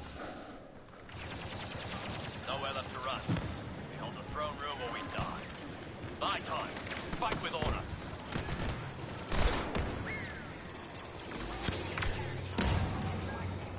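Laser guns fire in short bursts.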